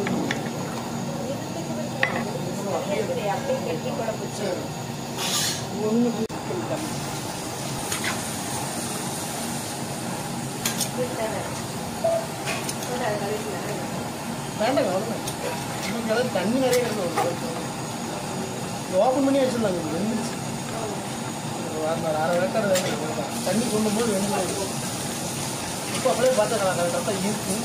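A metal spoon scrapes and knocks against a pot while stirring.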